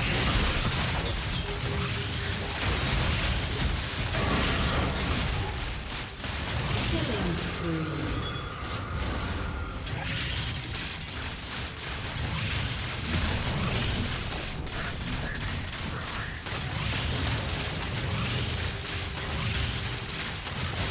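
Fighting in a video game sounds out, with spell blasts and weapon hits.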